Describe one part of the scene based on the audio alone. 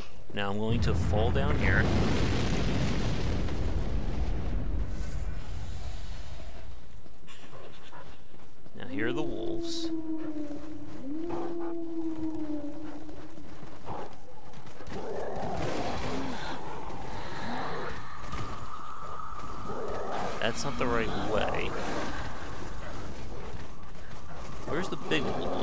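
Boots crunch in snow.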